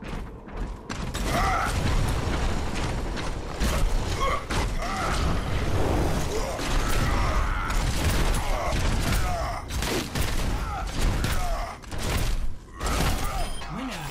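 Heavy weapons fire in rapid bursts.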